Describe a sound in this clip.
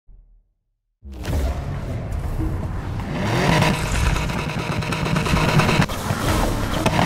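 A flat-six sports car engine revs.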